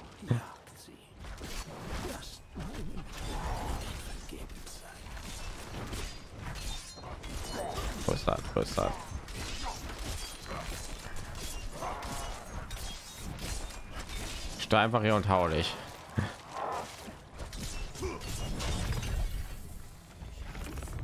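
Spells crackle and blast in a fierce fight.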